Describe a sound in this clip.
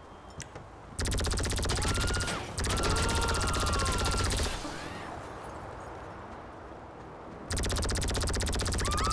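A gun fires in loud, rapid bursts.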